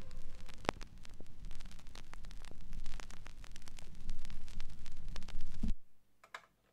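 A vinyl record crackles and pops as the needle plays its groove.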